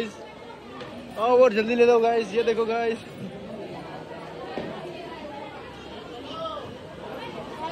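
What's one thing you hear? A crowd chatters in a large, echoing hall.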